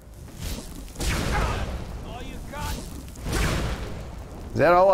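A fire spell roars and crackles in bursts.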